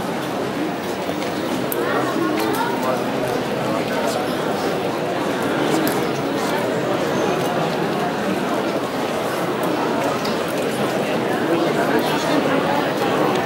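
A crowd murmurs and chatters nearby outdoors.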